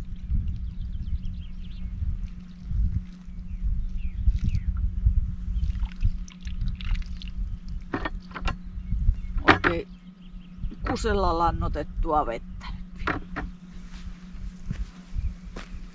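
Loose soil pours from a bucket onto the ground.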